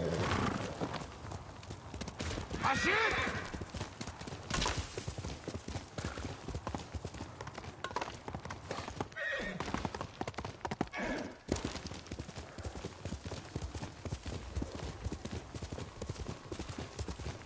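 A horse gallops quickly, its hooves pounding the ground.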